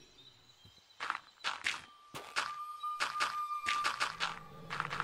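Blocks of earth are dug out with soft thuds.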